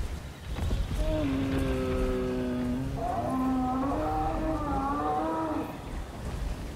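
A large creature lets out deep, drawn-out groaning calls.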